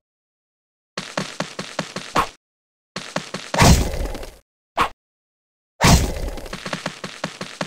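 A game character strikes repeatedly with rapid hits.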